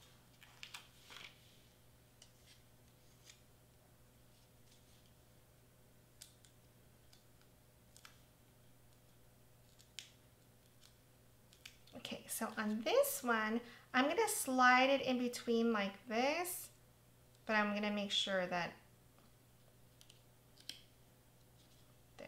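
Paper rustles and crinkles softly as hands peel and press small pieces.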